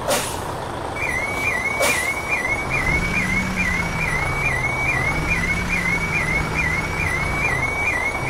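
A truck's reversing alarm beeps rapidly.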